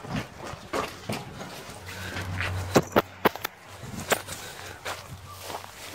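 Footsteps crunch and rustle through tall grass and weeds.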